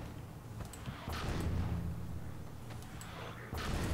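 Electric sparks crackle and snap close by.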